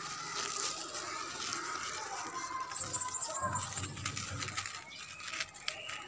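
Leaves rustle as a hand brushes through them.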